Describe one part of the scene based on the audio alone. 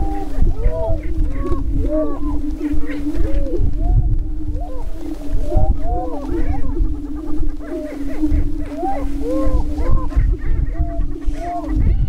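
Wind rumbles across the open ground.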